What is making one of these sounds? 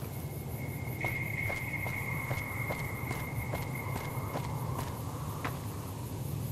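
Footsteps tread at a steady pace.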